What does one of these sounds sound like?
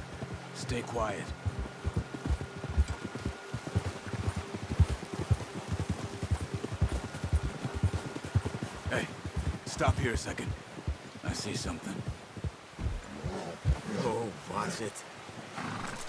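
Horse hooves crunch steadily through snow.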